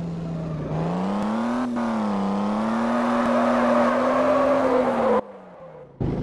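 Tyres screech on the road as a car drifts.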